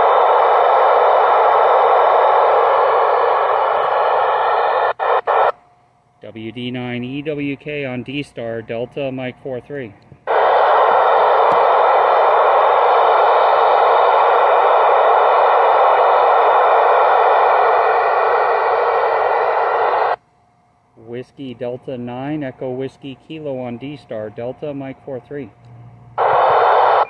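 A radio receiver hisses loudly with steady static.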